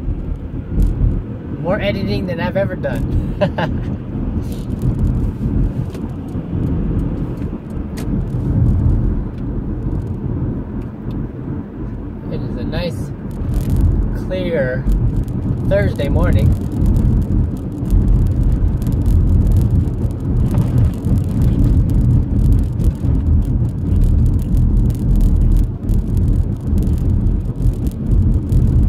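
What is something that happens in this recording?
A car engine and tyres rumble steadily on the road from inside the car.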